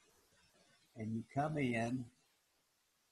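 An elderly man speaks briefly and calmly through an online call.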